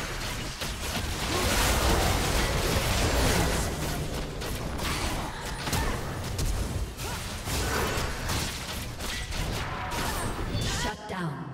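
Magic blasts and sword hits crackle and boom in a fast, busy fight.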